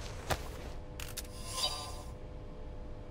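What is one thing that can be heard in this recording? A device gives a bright electronic chime as it switches on.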